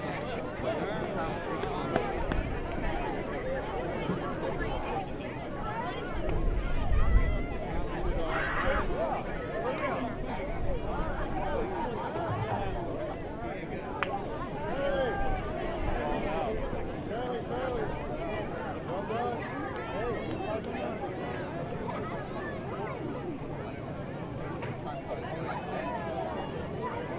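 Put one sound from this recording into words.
Children shriek and cheer excitedly.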